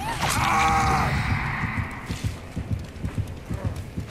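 A heavy weapon strikes a body with a thud.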